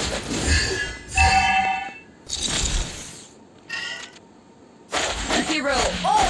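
Magic spells whoosh and burst in short, chiming bursts.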